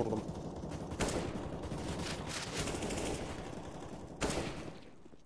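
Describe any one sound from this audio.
A rifle fires single sharp shots.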